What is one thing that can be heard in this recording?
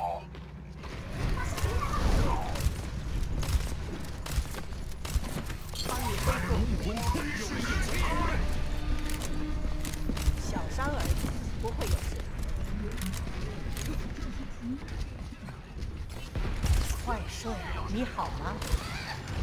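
Gunfire rattles in a video game firefight.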